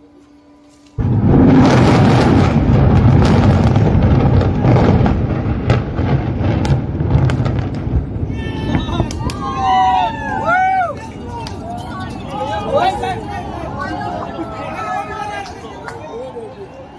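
A tall building collapses with a deep, roaring rumble that slowly fades.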